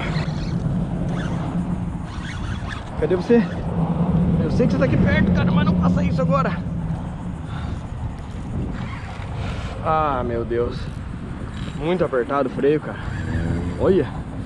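A fishing reel whirs as line is wound in.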